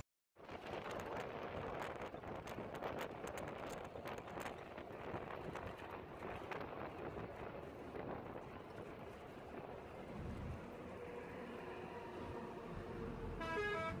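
Wind rushes past an open window.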